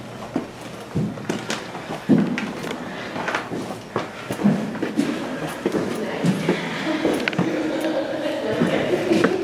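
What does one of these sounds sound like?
Footsteps creak and knock on a wooden floor in an echoing hall.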